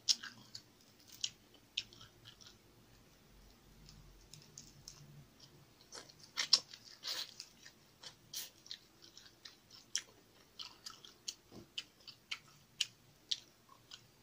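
Crisp food crunches and crackles as fingers pull it apart.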